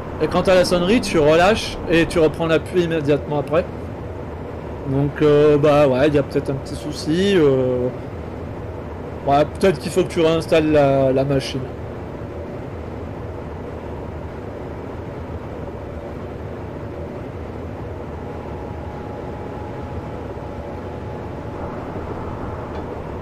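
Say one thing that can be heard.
An electric train rumbles steadily along the tracks at speed.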